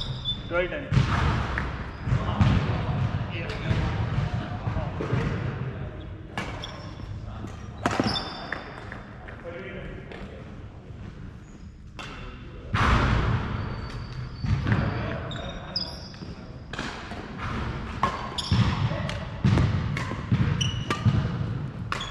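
Players' feet thud and shuffle across a wooden floor.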